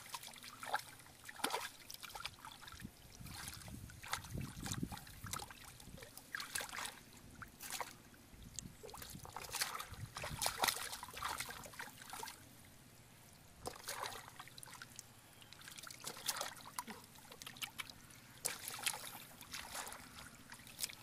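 Hands splash and slosh in shallow muddy water.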